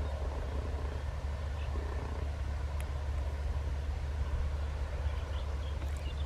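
A passenger train rumbles along far off.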